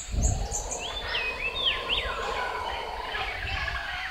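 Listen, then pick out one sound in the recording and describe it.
A jaguar snarls.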